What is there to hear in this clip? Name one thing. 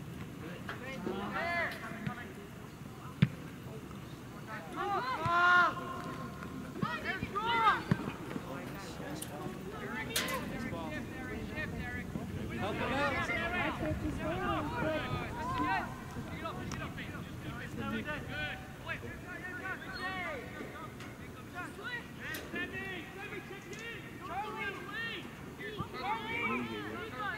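Young players shout and call to each other across an open field outdoors.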